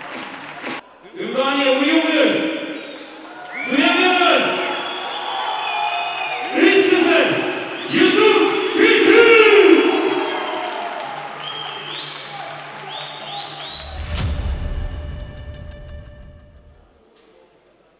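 A man announces loudly through a loudspeaker, with echo.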